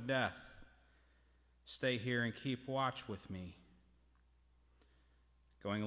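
A man reads aloud calmly through a microphone in a large echoing hall.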